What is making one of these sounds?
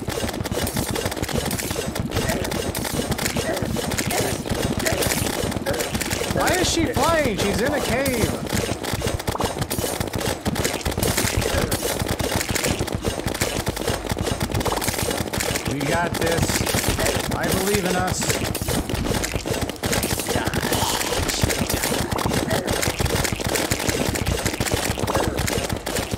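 Rapid video game battle effects clatter and blast nonstop.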